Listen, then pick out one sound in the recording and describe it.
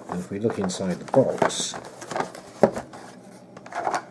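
A cardboard box lid is pulled open.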